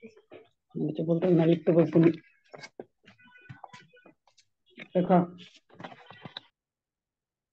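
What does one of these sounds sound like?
A woman speaks clearly over an online call, as if teaching.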